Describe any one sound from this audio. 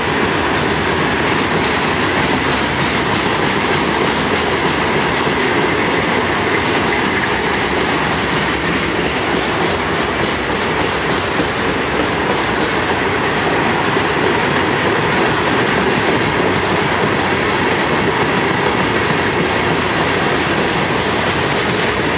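Steel wheels clack and squeal on the rails.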